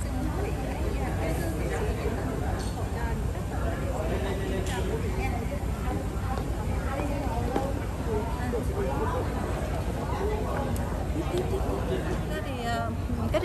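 A crowd murmurs and chatters indoors.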